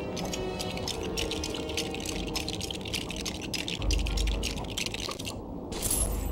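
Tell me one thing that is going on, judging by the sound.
Small plastic bricks click and clatter rapidly as they snap together.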